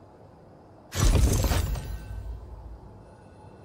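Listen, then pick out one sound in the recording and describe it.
A glowing object bursts open with a loud crackling whoosh.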